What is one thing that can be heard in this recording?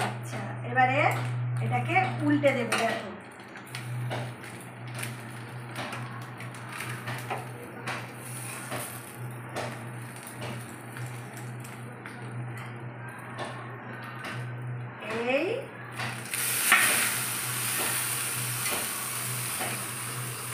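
Metal pans and lids clink and clatter.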